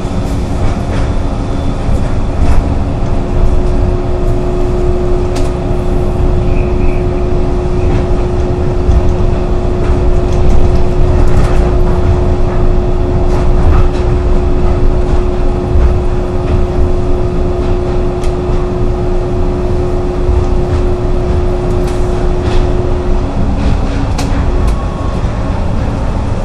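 An automated train hums and rumbles steadily along its track.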